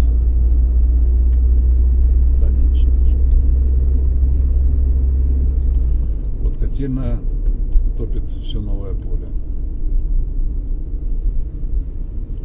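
Tyres rumble over an uneven road.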